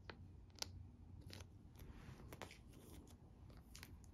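Album pages flip and rustle.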